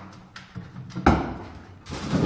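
A dog jumps down and lands with a thud.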